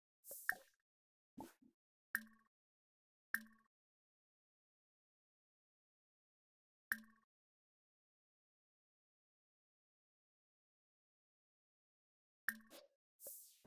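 Short soft clicks sound as menus pop open.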